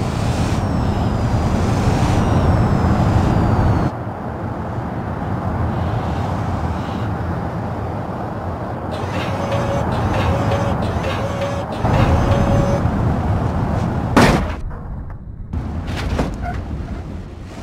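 Tyres roll and rumble on the road surface.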